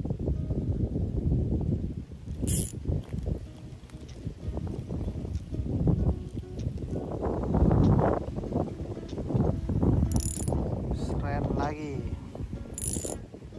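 A fishing reel whirs and clicks as its handle is wound.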